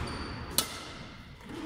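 A badminton racket strikes a shuttlecock sharply in an echoing hall.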